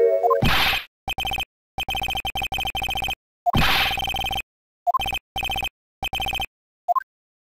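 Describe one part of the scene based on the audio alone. Rapid electronic blips tick in short bursts, like text being typed out in a game.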